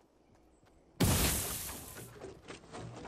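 A wooden wall snaps into place with a loud clatter.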